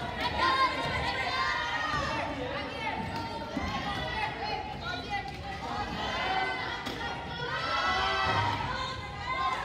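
Wheelchair tyres squeak on a wooden court.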